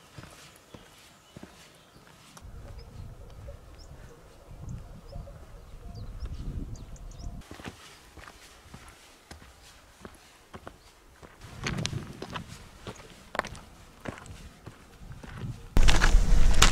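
Footsteps crunch on a rocky trail.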